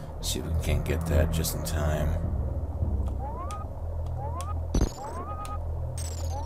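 Droning electronic video game music plays steadily.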